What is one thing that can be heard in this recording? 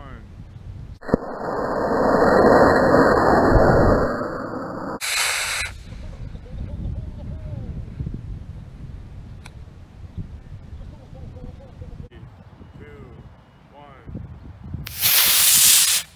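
A model rocket motor ignites with a loud rushing roar.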